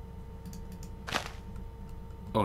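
A short crackling burst sounds as bone meal makes crops sprout.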